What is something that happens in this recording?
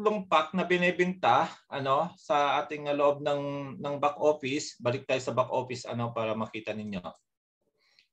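A man talks calmly into a microphone, heard close.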